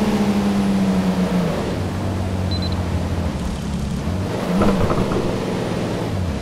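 A sports car engine hums and changes pitch as the car slows down and speeds up again.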